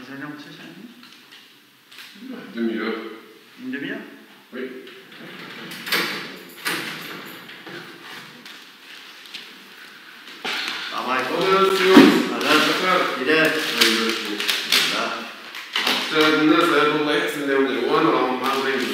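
A young man speaks calmly close to the microphone.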